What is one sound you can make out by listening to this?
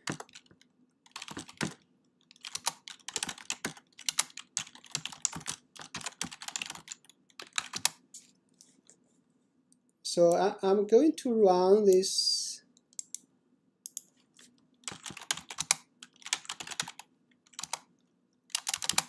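Keys clatter on a keyboard in quick bursts.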